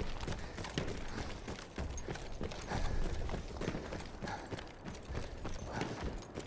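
Footsteps run quickly over dry dirt and gravel.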